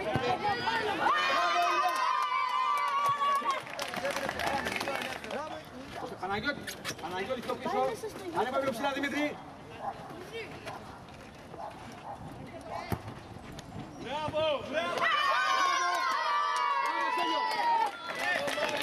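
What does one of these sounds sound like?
Young children shout and cheer excitedly outdoors.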